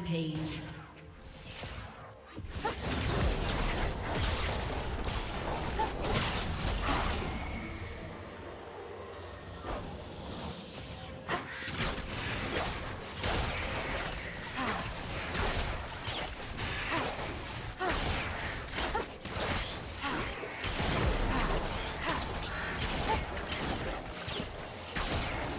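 Blows land with sharp hits.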